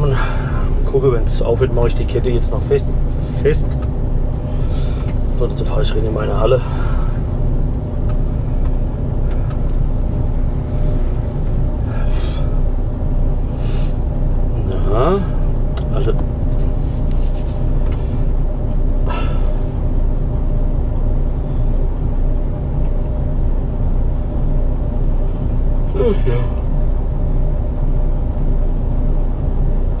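A truck engine idles with a steady low rumble.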